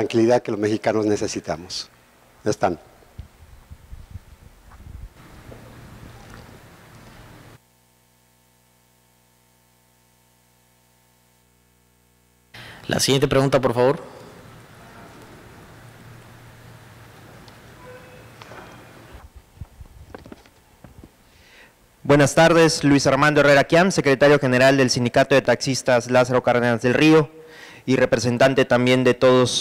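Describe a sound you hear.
A man speaks calmly into a microphone, heard over loudspeakers in a large hall.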